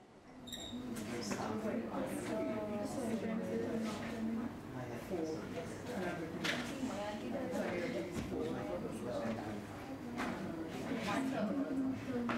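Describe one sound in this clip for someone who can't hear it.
Several young people chatter in a room.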